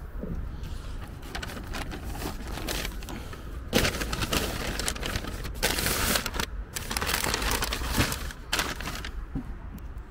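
Paper shopping bags rustle and crinkle as they are handled.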